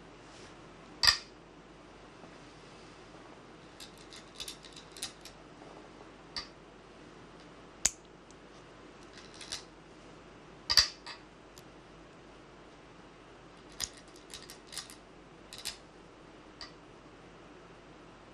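Go stones click sharply onto a wooden board.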